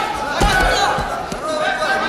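Bodies thump onto a mat.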